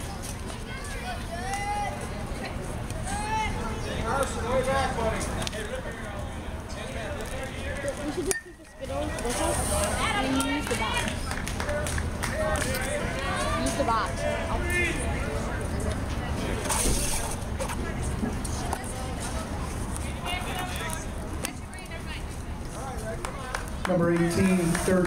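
Young players and nearby spectators call out and chatter outdoors.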